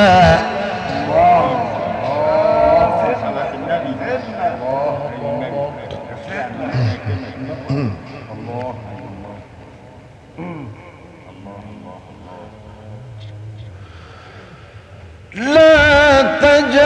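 A man chants in a long, wavering melodic voice.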